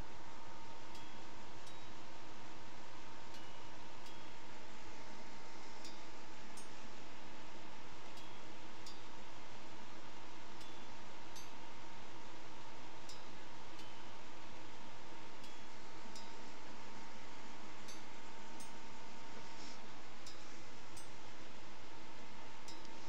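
Short game sound effects tick again and again at a steady pace.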